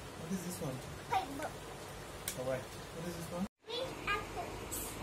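A young child says words aloud.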